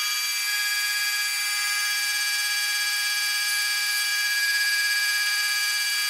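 A milling cutter whines steadily at a high pitch.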